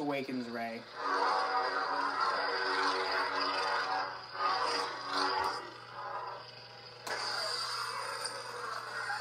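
A toy lightsaber hums and whooshes as it swings.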